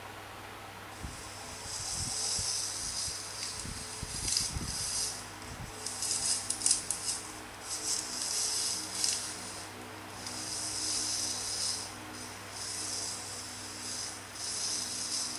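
A tablet game plays a hissing, whirring drilling effect in repeated bursts.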